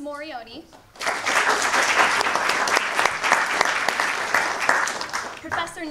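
A small crowd applauds loudly.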